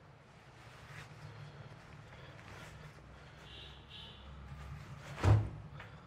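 A fabric reflector rustles and crinkles as it is folded.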